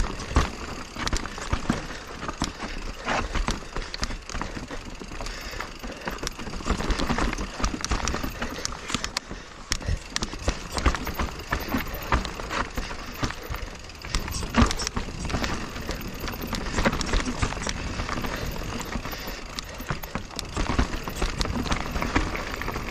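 A mountain bike rattles and clatters over roots and rocks.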